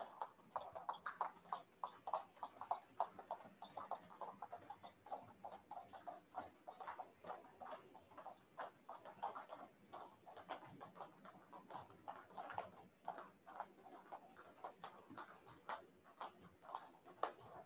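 Bare feet thump rhythmically on a padded floor as people jump in place.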